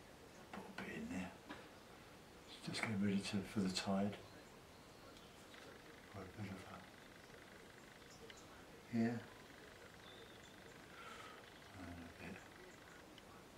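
An older man speaks calmly, close by, in short phrases with pauses.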